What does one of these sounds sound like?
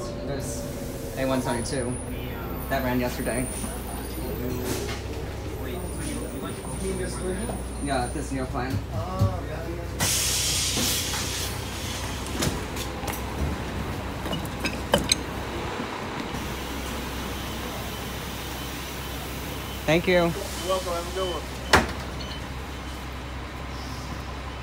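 A bus engine rumbles low and steady.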